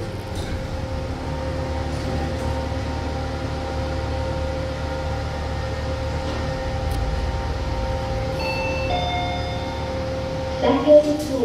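An elevator car hums as it travels.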